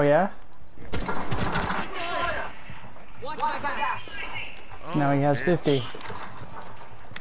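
Gunfire rattles in quick bursts.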